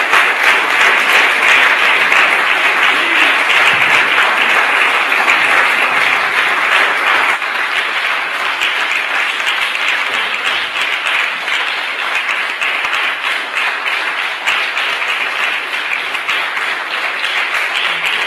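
A large audience claps and cheers in an echoing hall.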